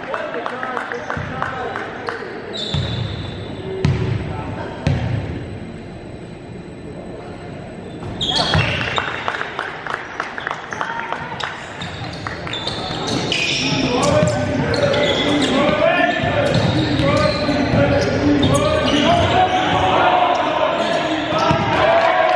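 A basketball bounces with echoing thuds.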